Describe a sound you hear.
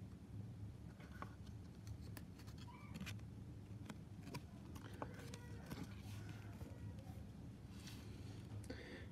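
Trading cards rustle and click as hands shuffle them.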